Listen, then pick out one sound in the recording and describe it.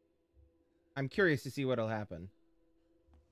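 A young man speaks briefly with animation into a microphone.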